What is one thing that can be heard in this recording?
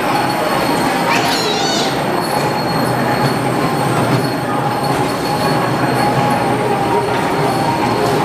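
Young children chatter and call out nearby.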